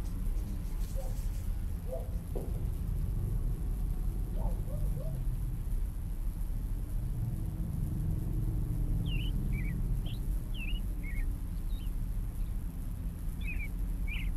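Birds chirp and call in the distance.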